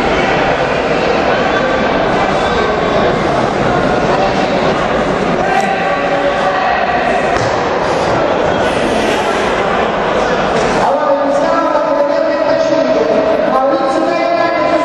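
A crowd of people chatters and murmurs in a large echoing hall.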